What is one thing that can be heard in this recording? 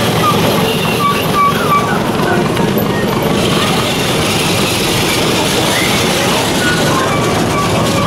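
A small train rolls past outdoors.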